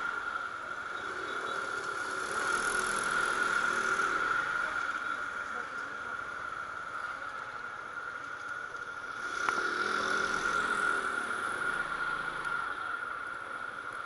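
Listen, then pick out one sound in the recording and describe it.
Wind rushes past close by.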